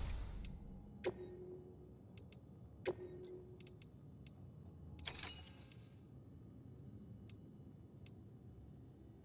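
Menu interface clicks and beeps sound sharply.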